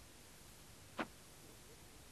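A hoe chops into wet soil.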